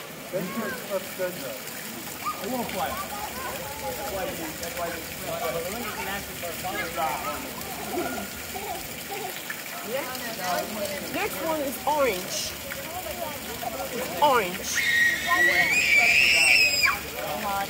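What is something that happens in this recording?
Men and women chat nearby in a lively outdoor crowd.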